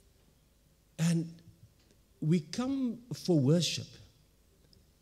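A man speaks through a loudspeaker in a large room.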